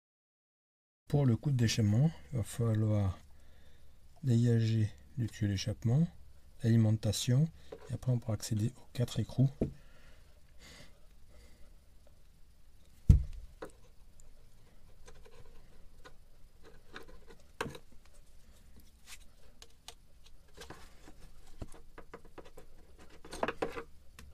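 A hand tool clicks and scrapes against metal fittings.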